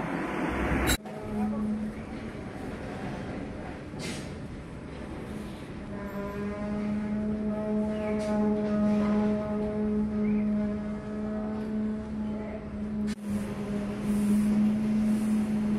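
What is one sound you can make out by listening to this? A concrete pump's engine hums steadily nearby.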